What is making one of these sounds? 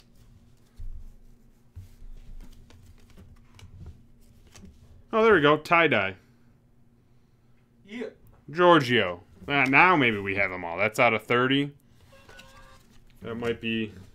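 Cards slide and flick against each other in hands.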